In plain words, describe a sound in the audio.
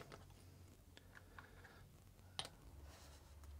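Plastic parts tap and click softly as they are handled.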